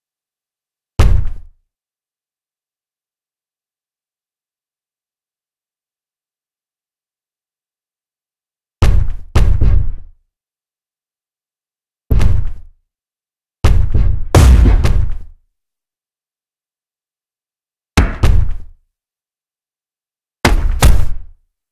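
Boxing gloves land heavy, thudding punches.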